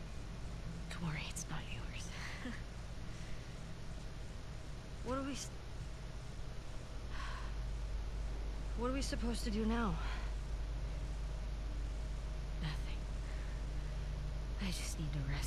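A young woman answers with a soft laugh.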